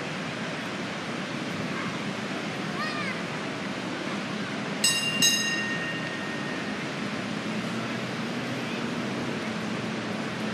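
A large waterfall roars in the distance.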